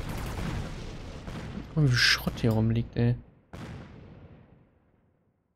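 Explosions and gunfire rumble in a battle.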